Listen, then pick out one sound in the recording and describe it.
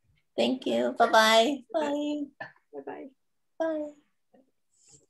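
An older woman speaks warmly and cheerfully over an online call.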